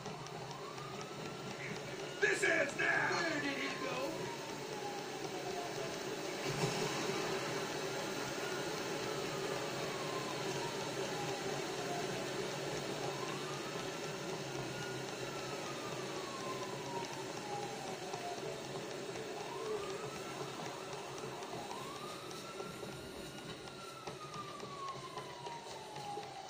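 Footsteps run over dirt and grass, heard through a television speaker.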